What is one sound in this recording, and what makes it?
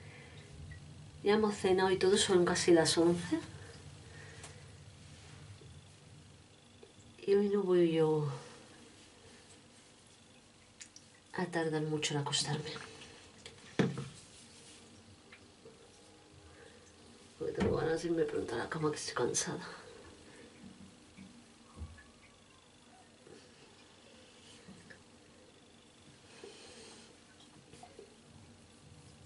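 A towel rubs softly against skin.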